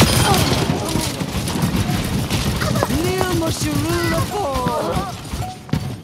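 Rapid gunfire rattles and crackles close by.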